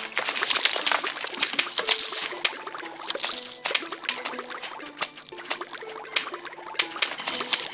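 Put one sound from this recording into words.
Cartoon peas pop and splat in quick, repeated hits.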